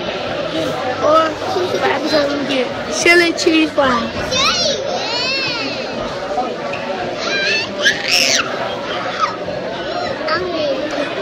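A boy talks excitedly close to the microphone.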